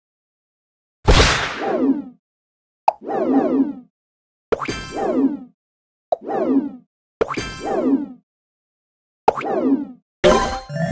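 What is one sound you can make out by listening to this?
Game blocks pop with bright, falling chimes.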